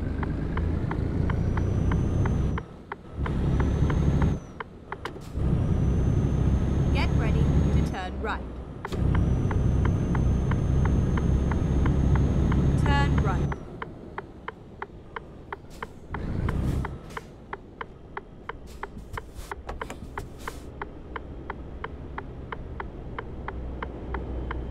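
A truck engine rumbles loudly, then drops to a low idle.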